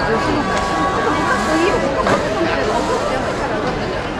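A man rustles a large plastic bag.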